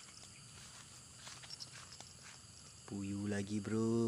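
A fish splashes as it is pulled out of the water.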